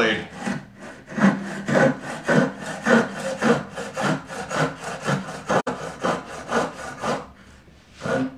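A hand plane shaves wood in quick, repeated strokes.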